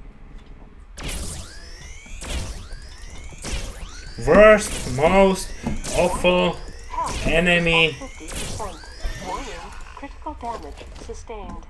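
Laser guns fire in rapid zapping bursts.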